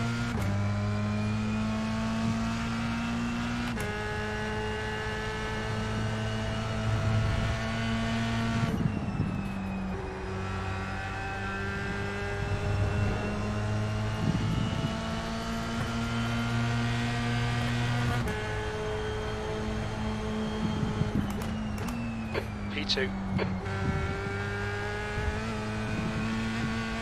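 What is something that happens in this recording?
A racing car engine roars loudly, rising in pitch and dropping sharply with each gear change.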